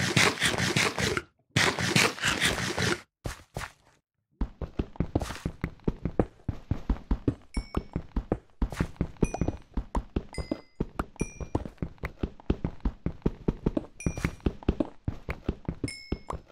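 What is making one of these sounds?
Stone blocks crack and break apart.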